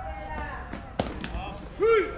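A baseball smacks sharply off a bat or into a mitt.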